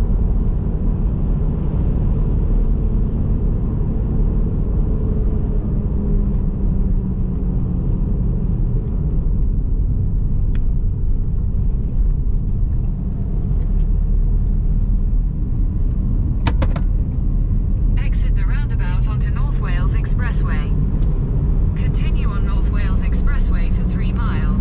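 A car engine hums steadily with low road rumble.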